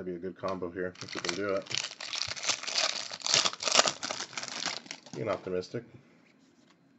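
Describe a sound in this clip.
A foil wrapper crinkles and tears loudly.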